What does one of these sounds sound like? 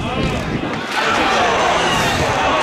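A crowd cheers from a distance.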